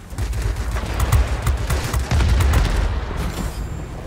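A plane explodes with a loud bang.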